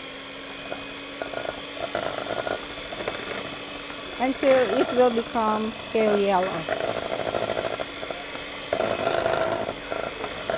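Mixer beaters clatter against a metal bowl.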